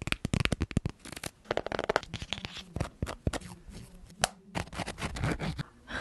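Paper pages flick and rustle close to a microphone.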